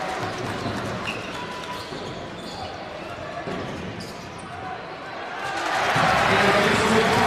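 Basketball shoes squeak on the court.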